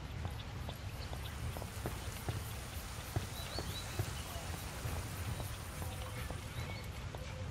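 A fountain splashes nearby.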